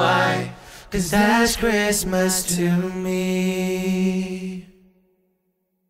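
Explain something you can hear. A group of men and women sing a song together in harmony, close by.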